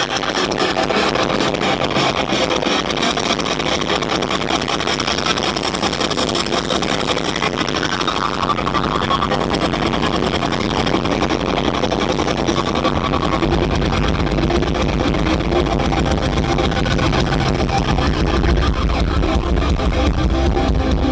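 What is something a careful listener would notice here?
Drums pound hard and fast.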